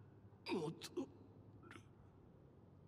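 A young man speaks softly and with emotion, close by.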